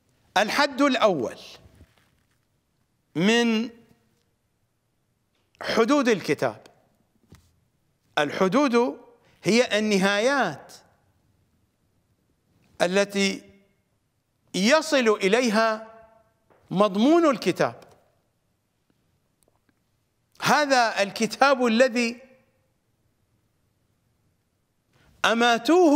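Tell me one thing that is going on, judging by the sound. A middle-aged man speaks with animation into a close microphone, in short phrases broken by pauses.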